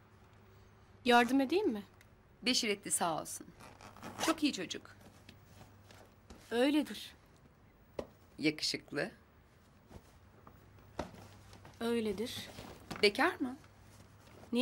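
A woman speaks calmly and cheerfully nearby.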